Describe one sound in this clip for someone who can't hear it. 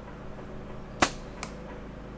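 A bowstring snaps with a sharp twang as an arrow is released.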